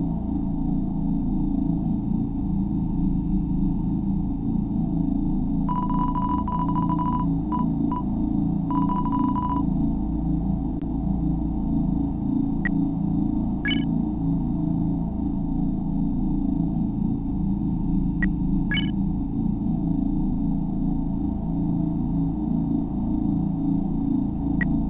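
Music plays steadily throughout.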